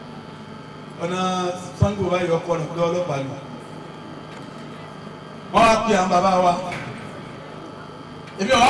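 A man preaches loudly and with fervour through a microphone and loudspeaker, outdoors.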